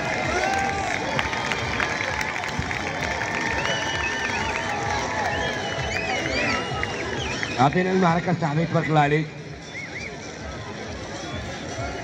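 A large crowd chatters and calls out outdoors.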